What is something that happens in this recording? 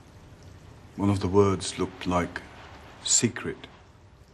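An older man speaks calmly and closely in a deep voice.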